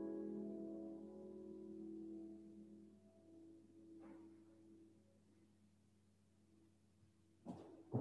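A double bass holds a final low note that fades away.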